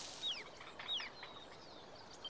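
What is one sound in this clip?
A small creature chirps in high, quick calls.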